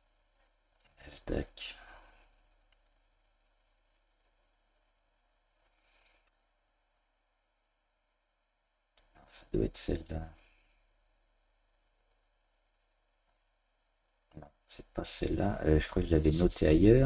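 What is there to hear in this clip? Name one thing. A man speaks calmly and in short bursts close to a microphone.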